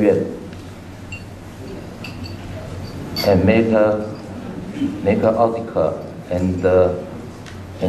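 A middle-aged man speaks calmly into a microphone, heard through loudspeakers in a large room.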